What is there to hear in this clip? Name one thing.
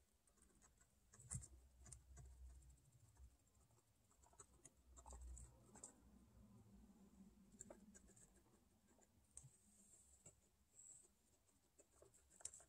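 A guinea pig rustles through dry hay.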